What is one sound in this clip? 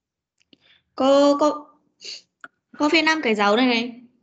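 A child speaks clearly over an online call.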